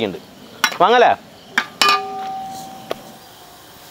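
A wooden spoon scrapes and stirs food in a metal pan.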